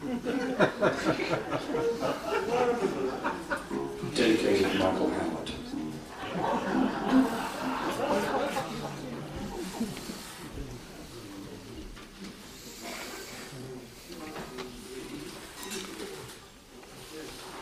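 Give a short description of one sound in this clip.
A jazz band plays a lively tune.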